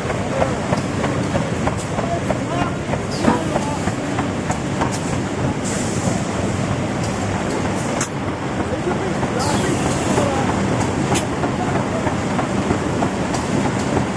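A machine hums and rattles steadily in a loud, echoing hall.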